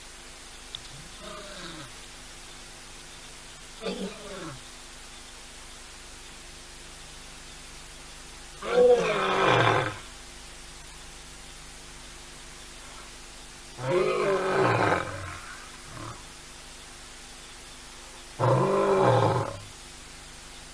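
A lion roars nearby in a series of deep, groaning calls that grow louder.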